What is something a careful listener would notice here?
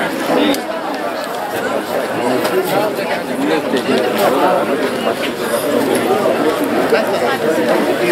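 A crowd of people chatters and calls out nearby, outdoors.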